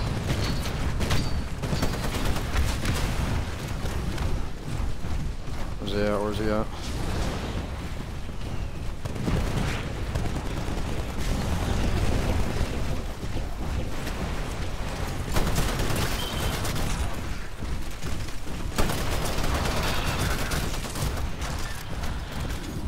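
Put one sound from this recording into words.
Gunfire in a video game rattles in rapid bursts.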